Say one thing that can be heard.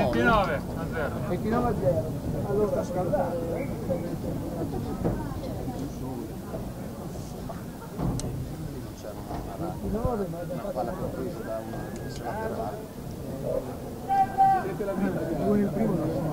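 Men call out to each other across an open field.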